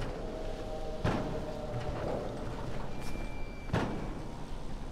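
Footsteps thud and land on a metal roof.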